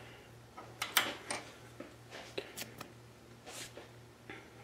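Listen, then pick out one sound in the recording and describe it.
Metal parts click and tap as a machine lever is moved by hand.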